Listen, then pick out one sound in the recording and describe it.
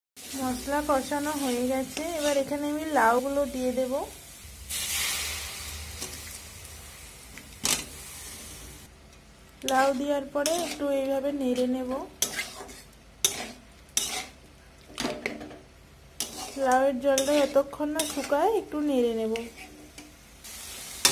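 A spoon scrapes and knocks against a metal pot.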